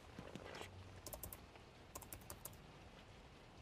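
Fingers tap quickly on a keyboard.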